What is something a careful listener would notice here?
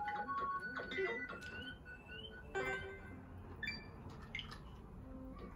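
Short video game menu chimes sound as options are picked.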